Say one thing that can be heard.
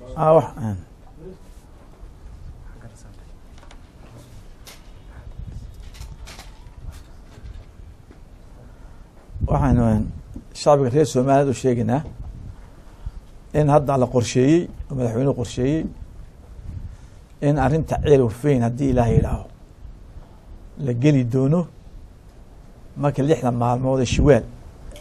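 A middle-aged man speaks calmly into a microphone, in pauses.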